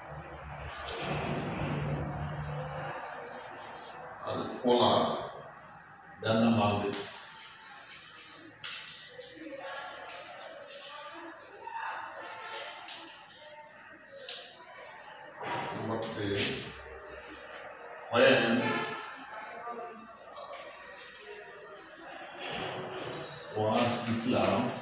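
Chalk scratches and taps on a chalkboard.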